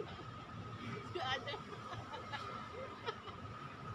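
A young woman laughs nearby.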